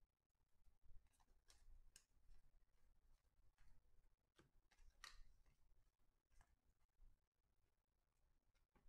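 Trading cards slide and flick against each other as they are shuffled by hand.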